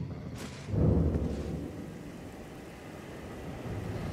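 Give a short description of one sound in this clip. A heavy sword is drawn with a scrape of metal.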